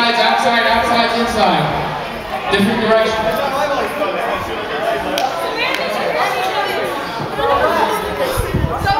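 A group of young people chatter and call out in a large echoing hall.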